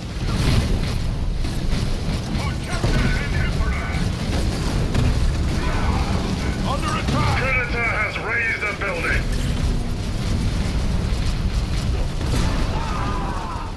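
Gunfire and explosions boom in a battle.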